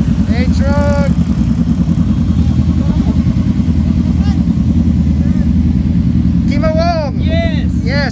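Motorcycle engines idle with a steady low rumble.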